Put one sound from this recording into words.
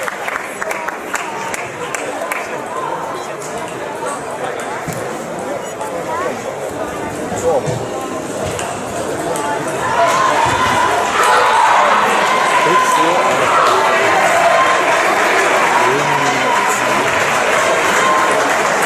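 Many people chatter in a large echoing hall, growing louder partway through.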